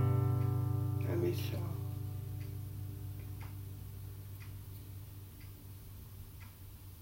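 An acoustic guitar chord rings out and slowly fades.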